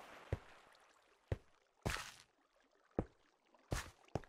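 A stone block thuds as it is set down.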